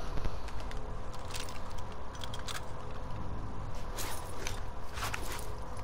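Equipment rattles and clatters close by.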